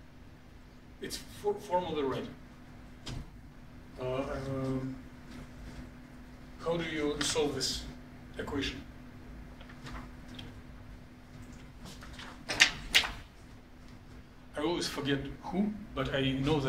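A man speaks calmly, as if lecturing, in a room.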